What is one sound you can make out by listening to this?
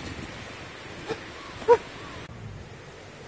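A young man exclaims close by.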